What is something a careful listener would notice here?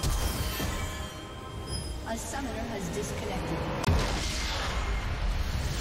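Magic blasts and crackling spell effects burst during a fight.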